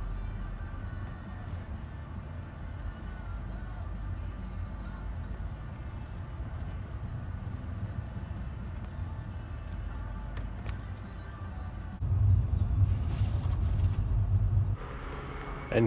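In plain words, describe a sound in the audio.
A car engine hums low and steady while driving.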